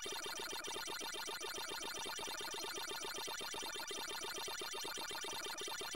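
An electronic siren tone wavers steadily underneath.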